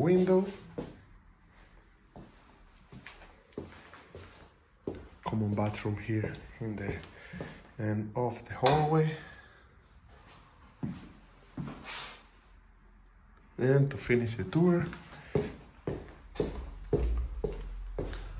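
A man speaks calmly close by, pausing now and then.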